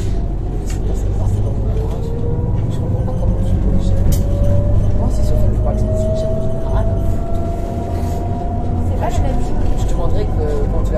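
A car's whine slowly rises in pitch as it speeds up.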